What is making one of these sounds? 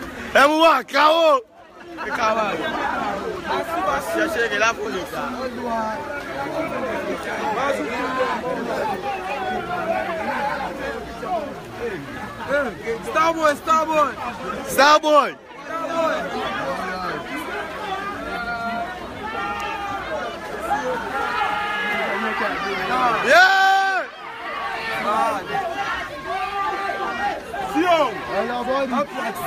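A crowd of young men shouts and chatters close by, outdoors.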